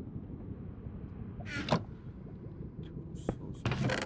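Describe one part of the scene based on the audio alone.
A wooden chest creaks shut.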